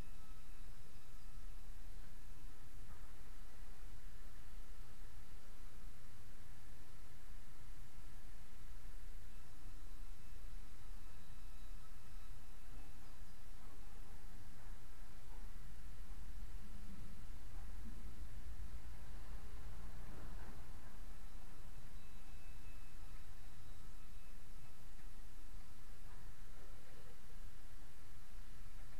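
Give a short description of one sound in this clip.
A tool scrapes softly against a wall.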